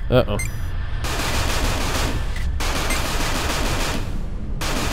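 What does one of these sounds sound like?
Laser guns fire in a rapid, hissing stream.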